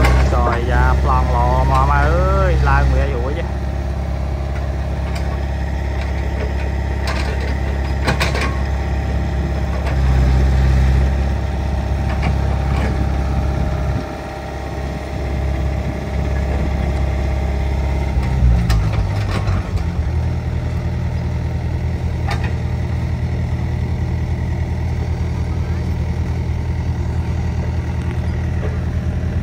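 Diesel excavator engines rumble and drone steadily.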